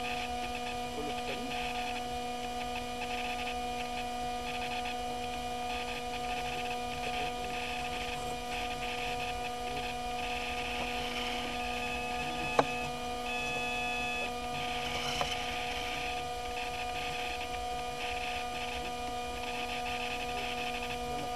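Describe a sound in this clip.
A small motor whines steadily and close.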